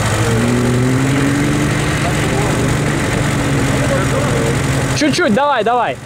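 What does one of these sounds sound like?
A car engine idles nearby with a low, steady hum.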